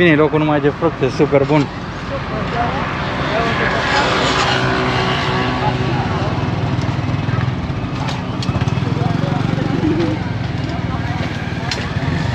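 A crowd murmurs in the distance outdoors.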